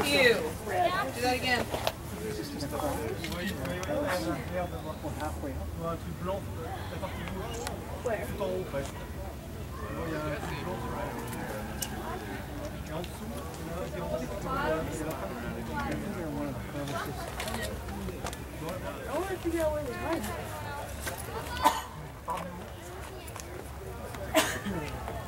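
Young boys talk and call out nearby, outdoors.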